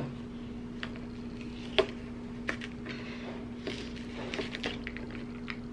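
A plastic bottle cap clicks and creaks as it is twisted.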